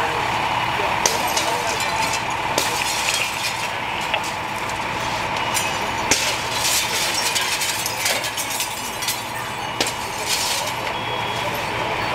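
A firefighter strikes a window frame with a pole.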